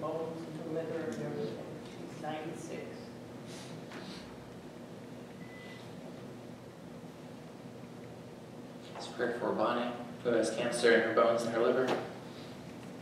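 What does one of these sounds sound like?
A young man speaks calmly into a microphone in an echoing hall.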